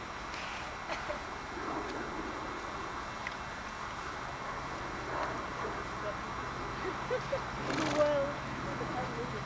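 A horse's hooves thud softly on grass as it walks.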